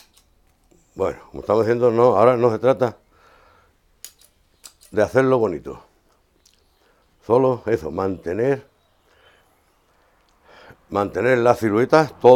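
An elderly man talks calmly.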